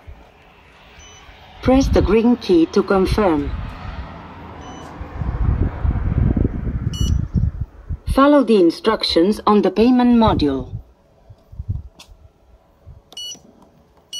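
A payment machine beeps in short electronic tones.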